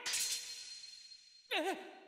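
A sword slashes with a sharp swish.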